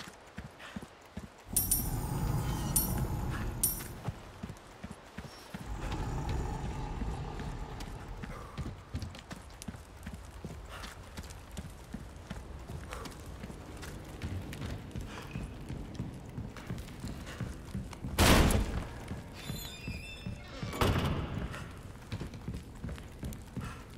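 Footsteps thud steadily on dirt and wooden boards.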